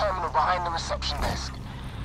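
A torch flame roars.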